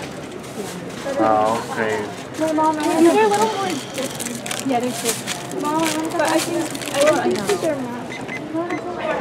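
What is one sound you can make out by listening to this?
A woman speaks casually close by.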